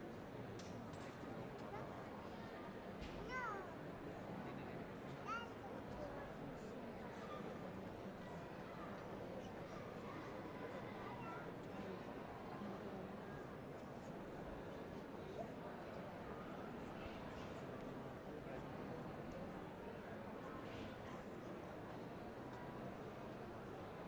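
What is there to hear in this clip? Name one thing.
A large crowd murmurs steadily in an echoing street.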